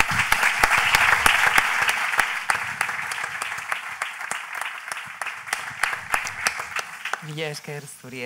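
An audience applauds in a large room, and the applause slowly fades.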